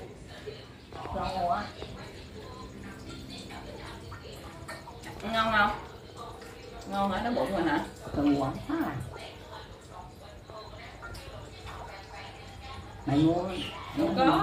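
An elderly woman speaks softly and haltingly close by.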